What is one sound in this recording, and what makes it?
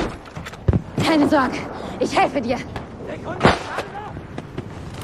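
A wounded man groans in pain.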